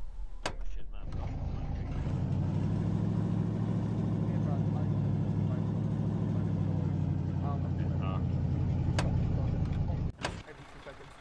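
A truck engine rumbles steadily up close.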